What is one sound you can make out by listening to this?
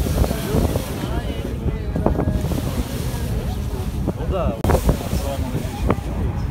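Wind buffets the air outdoors over open water.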